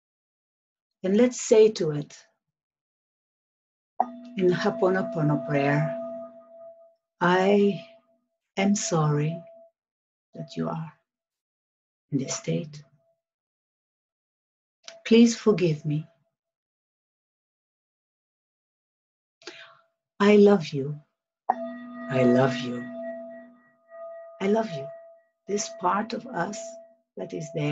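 A middle-aged woman speaks softly and slowly, close to the microphone, with long pauses.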